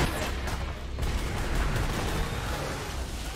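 Electricity crackles and zaps loudly.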